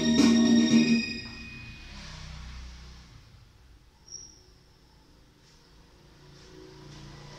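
A child plays notes on an electronic keyboard.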